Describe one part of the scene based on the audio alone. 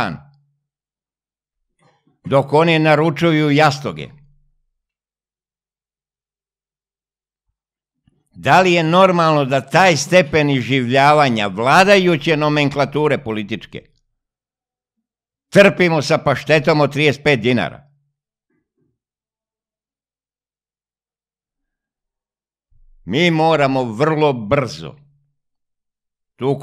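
An elderly man speaks with animation into a close microphone, in short bursts with pauses.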